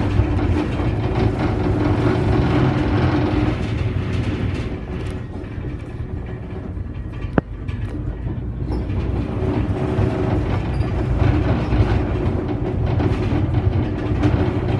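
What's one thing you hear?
The bus rattles and shakes as it rolls along the road.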